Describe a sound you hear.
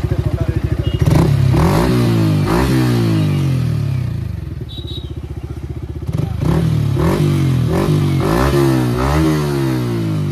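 A motorcycle engine revs up and down repeatedly.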